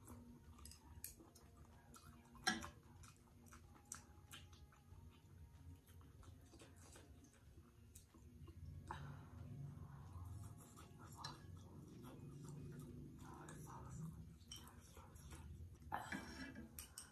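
Chopsticks clink against a metal pot.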